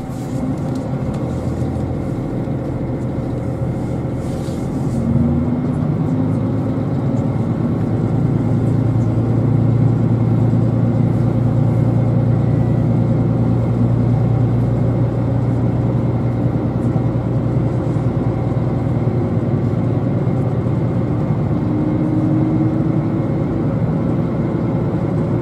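A train's motors hum and whine as it pulls out and picks up speed.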